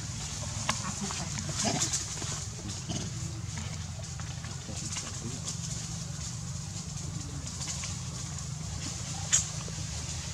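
Leaves rustle as a small monkey moves through grass.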